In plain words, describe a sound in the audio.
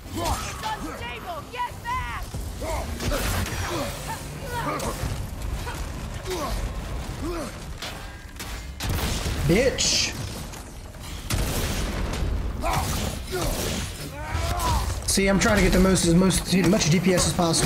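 A stone creature roars and growls.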